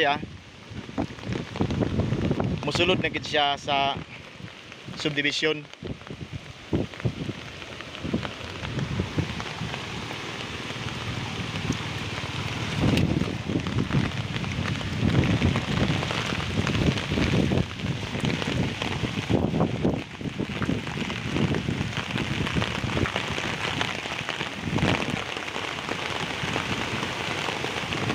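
Rain patters steadily on the ground.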